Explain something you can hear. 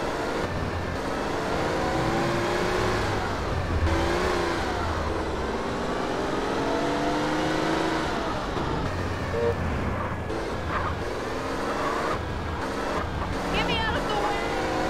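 A car engine revs as the car speeds along.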